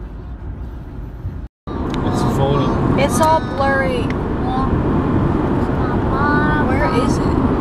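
A car drives along a highway, with a steady rumble of tyres on the road.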